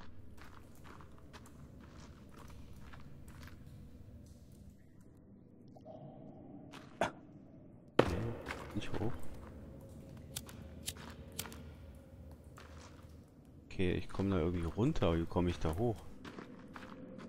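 Footsteps scrape and tap on stone.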